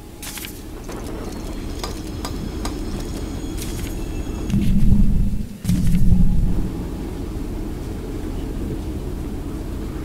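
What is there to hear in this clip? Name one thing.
A train engine rumbles low and steady.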